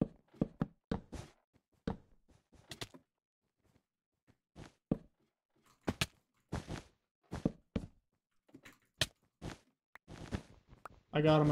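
Game blocks are placed with quick soft clicks.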